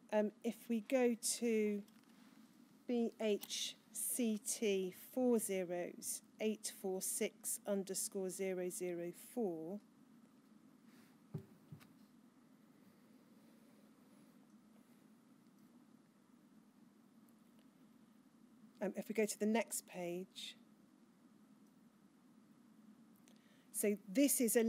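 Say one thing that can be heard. A woman speaks calmly into a microphone, pausing now and then.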